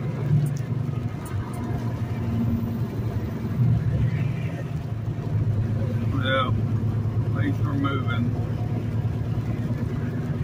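Tyres roll on a wet road.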